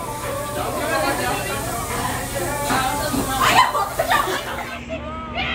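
Young people chatter and laugh nearby.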